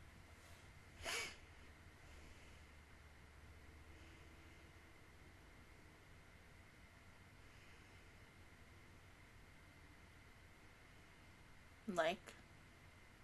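A young woman lets out short, high, wavering cries close to a microphone.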